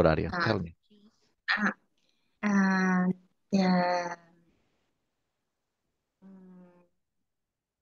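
A woman talks with animation over an online call.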